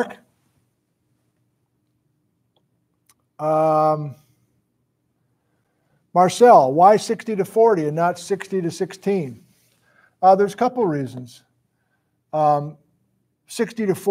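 A middle-aged man speaks calmly and close up, in short bursts with pauses.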